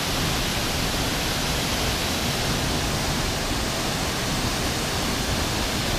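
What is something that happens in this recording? A waterfall roars steadily as it pours into a pool outdoors.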